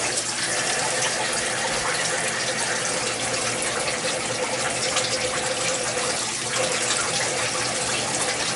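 A milling machine cutter whines steadily as it cuts metal.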